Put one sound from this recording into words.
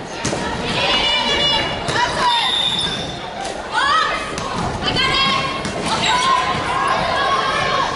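The sounds echo around a large hall.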